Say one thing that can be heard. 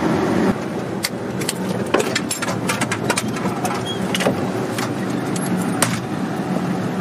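A door latch clicks and rattles as a door is opened.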